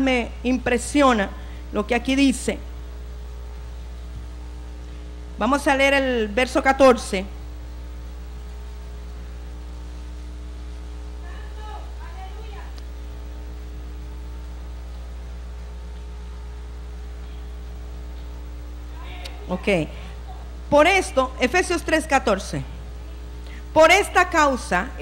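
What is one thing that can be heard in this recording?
A middle-aged woman speaks calmly into a microphone, in bursts with long pauses.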